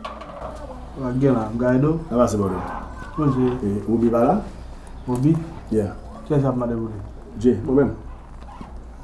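A middle-aged man speaks with animation, close by.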